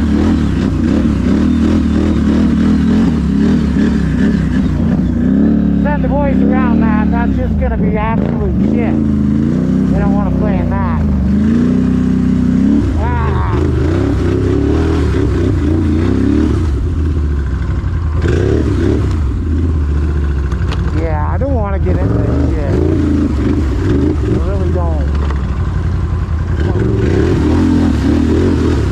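An all-terrain vehicle engine drones close by, revving up and down.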